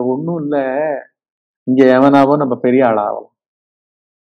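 An elderly man speaks with animation close to a microphone.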